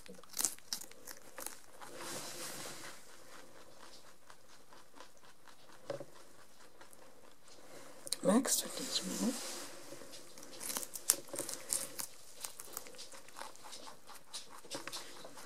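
A rabbit crunches and nibbles on a celery stalk close by.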